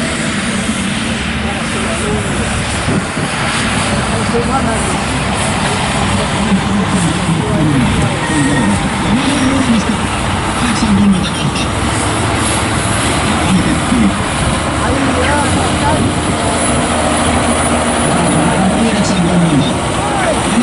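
A heavy sled scrapes along a dirt track.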